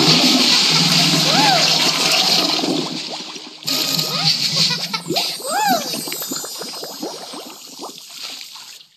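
Coins clink and jingle in a pile.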